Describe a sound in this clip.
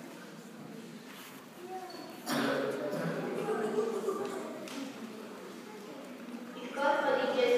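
A crowd of children murmurs quietly.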